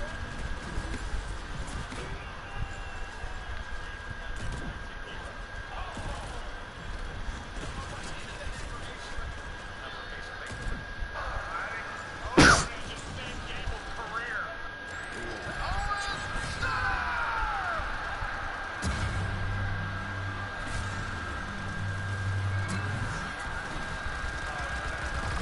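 Game weapons fire in quick bursts with sharp electronic zaps.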